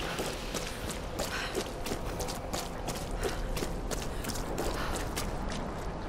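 Footsteps run over dirt and stones.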